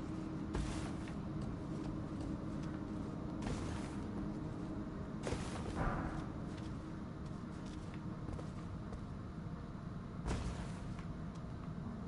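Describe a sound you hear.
Footsteps thud and scrape on rock.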